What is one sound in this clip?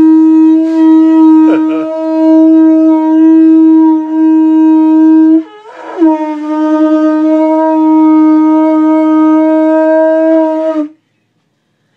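A woman blows a conch shell in long, loud, steady horn-like blasts, with a short break for breath in the middle.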